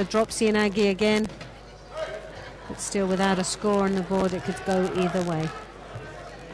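A crowd chants and cheers loudly in a large hall.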